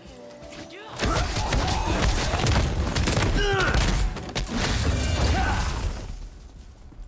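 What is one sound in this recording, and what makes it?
Magic spells blast and crackle loudly.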